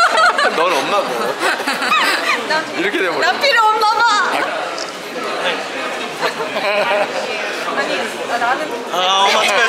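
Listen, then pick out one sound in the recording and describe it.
A young man talks cheerfully.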